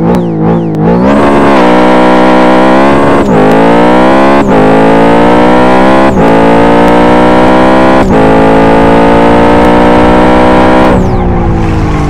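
A sports car engine roars as it accelerates hard, with brief dips at each gear change.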